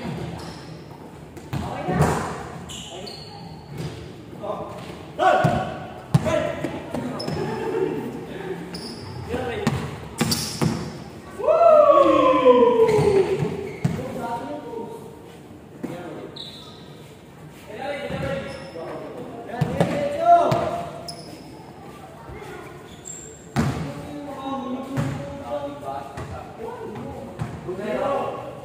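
A basketball bounces on a hard floor in a large echoing hall.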